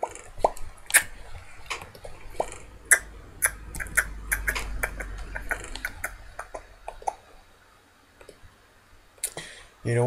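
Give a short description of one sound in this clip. A computer mouse clicks rapidly, again and again.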